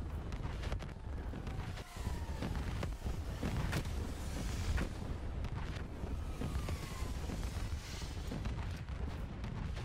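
Gunfire cracks in rapid bursts.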